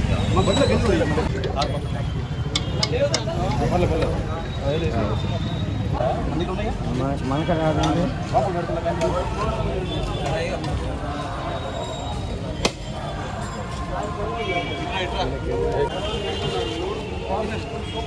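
Metal ladles scrape and clink against steel pots.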